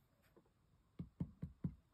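A small object taps lightly on paper.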